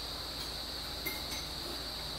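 A metal fork clinks lightly against a bowl.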